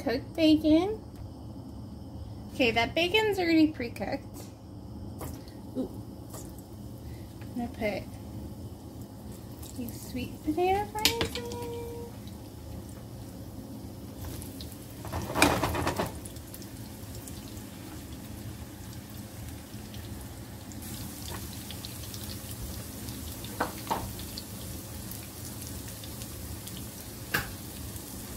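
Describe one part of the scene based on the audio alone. Bacon sizzles steadily in a hot frying pan.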